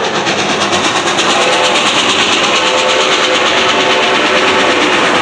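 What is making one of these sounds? A railroad crossing bell rings rapidly and steadily.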